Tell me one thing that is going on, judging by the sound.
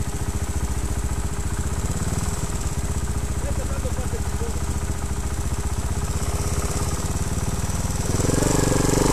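A dirt bike engine idles and putters nearby.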